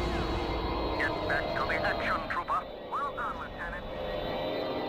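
Laser blasts zap in quick bursts.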